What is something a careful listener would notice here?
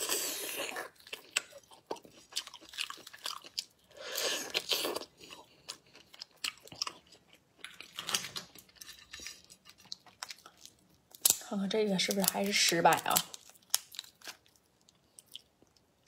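Shells crack and crunch as a young woman peels a prawn.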